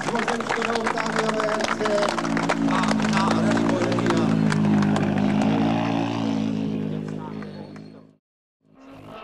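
A rally car engine idles and revs loudly close by.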